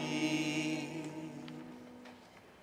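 An elderly man sings a line through a microphone in an echoing hall.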